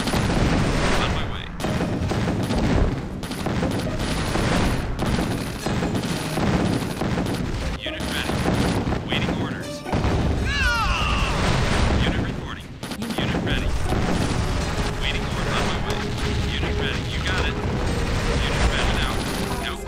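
Rapid gunfire crackles in a battle.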